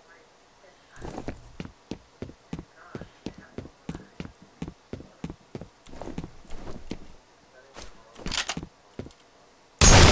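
Footsteps thud steadily on metal stairs.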